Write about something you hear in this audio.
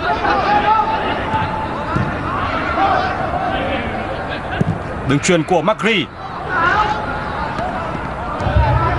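A large crowd cheers and chants throughout a big open stadium.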